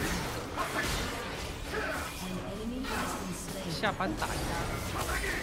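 Magic blasts whoosh and crackle in a fast fight.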